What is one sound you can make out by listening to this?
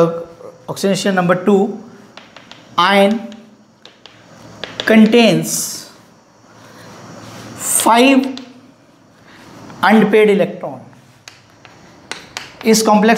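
A man speaks calmly and clearly, as if teaching, close by.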